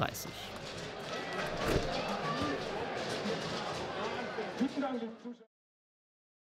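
A crowd cheers in an open-air stadium.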